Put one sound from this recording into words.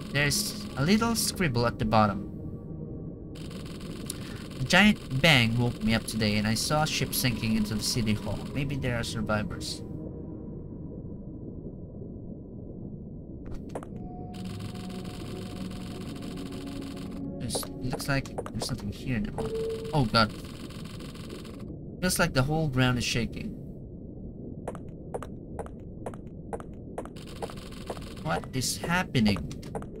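A young man reads aloud with animation close to a microphone.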